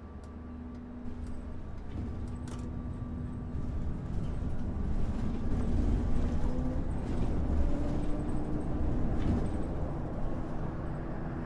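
A bus engine grows louder and rumbles as the bus pulls away.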